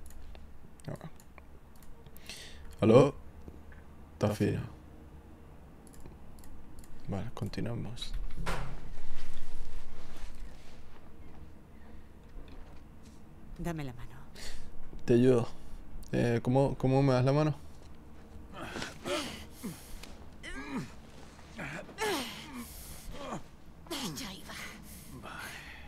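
A man talks casually and close to a microphone.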